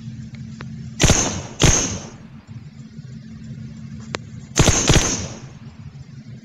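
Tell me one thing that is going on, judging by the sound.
Rifle shots crack loudly, a few seconds apart.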